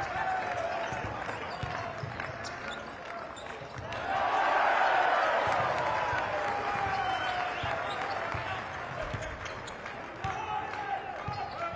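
A basketball bounces on a hard court with dull, regular thuds.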